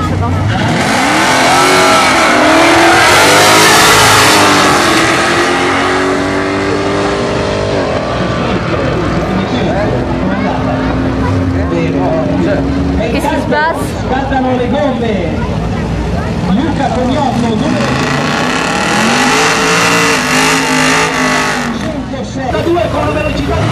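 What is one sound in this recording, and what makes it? Powerful race car engines roar loudly as cars accelerate hard down a track and fade into the distance.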